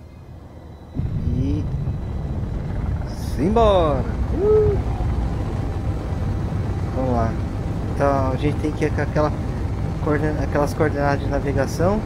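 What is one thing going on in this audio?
A spaceship's engine rumbles loudly and steadily.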